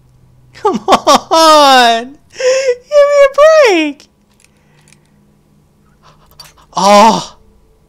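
A metal lock pick scrapes and clicks inside a lock.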